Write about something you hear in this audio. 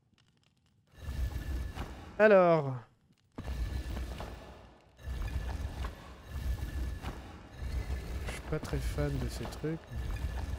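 Stone tiles grind and scrape as they slide into place.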